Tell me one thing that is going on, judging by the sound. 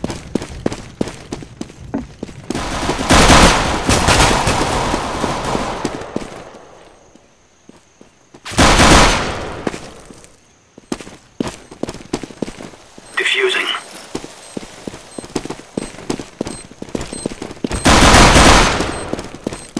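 A pistol fires sharp shots, one at a time.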